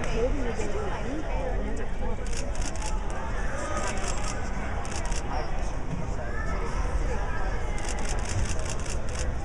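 People talk in a large echoing hall.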